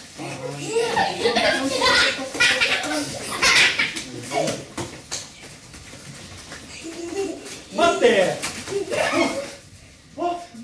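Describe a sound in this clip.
Children shout and laugh in an echoing hall.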